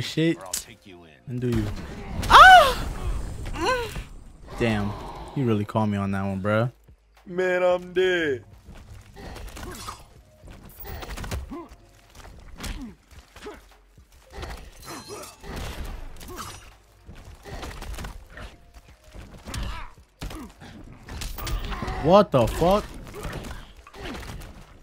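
Punches and blows land in a video game fight.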